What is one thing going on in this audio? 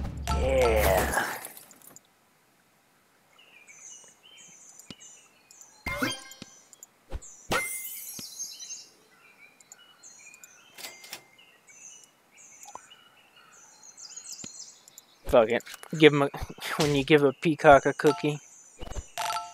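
Cheerful game sound effects chime and pop in short bursts.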